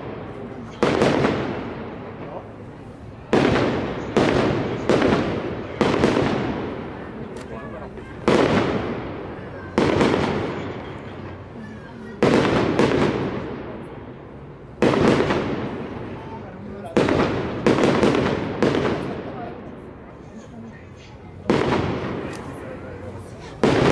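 Fireworks boom loudly overhead, again and again, each bang echoing off buildings.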